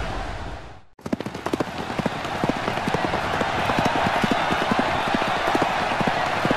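A horse gallops, its hooves thudding in a quick rhythm.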